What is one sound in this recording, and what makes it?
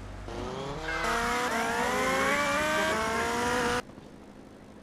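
A motorcycle engine revs up again and again.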